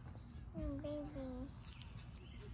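A young girl speaks briefly and softly up close.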